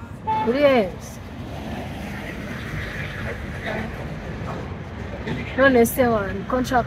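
A young woman talks animatedly on a phone, close by.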